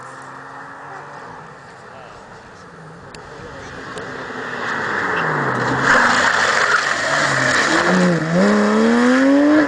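A racing car engine roars closer and revs hard through gear changes.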